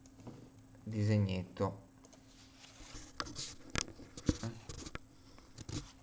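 A sheet of paper rustles and scrapes close by.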